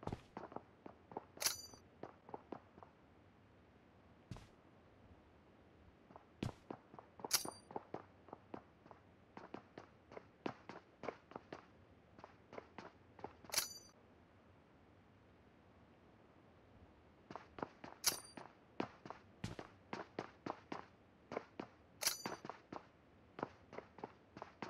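Rifle shots crack in quick bursts, close by.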